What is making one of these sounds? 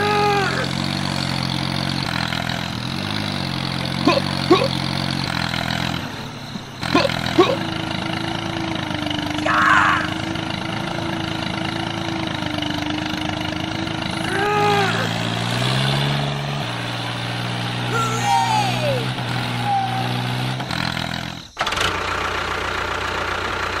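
A small toy engine hums steadily.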